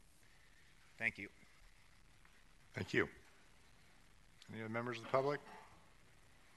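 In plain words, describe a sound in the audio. A man speaks briefly through a microphone in a large room.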